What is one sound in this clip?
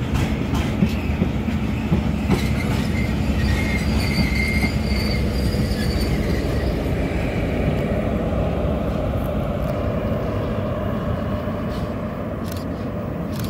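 A diesel locomotive engine drones loudly as it passes.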